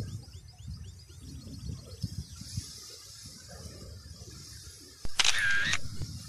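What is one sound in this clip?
Wind gusts outdoors, rustling through tall reeds.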